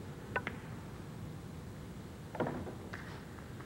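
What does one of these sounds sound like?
A pool ball rolls and drops into a pocket.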